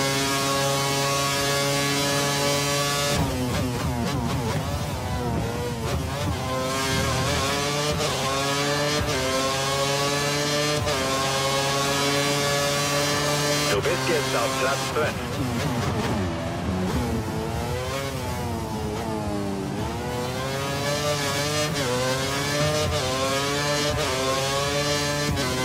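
A racing car engine screams at high revs, rising through the gears and dropping as it brakes for corners.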